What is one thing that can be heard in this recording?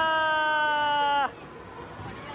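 An arcade machine sounds a loud, steady electronic tone that cuts off suddenly.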